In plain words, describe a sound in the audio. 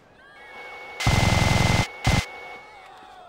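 A heavy machine gun fires in loud, rapid bursts.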